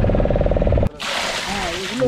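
Water splashes onto fish in a plastic crate.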